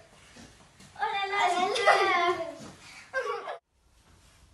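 A young girl shouts loudly and excitedly close by.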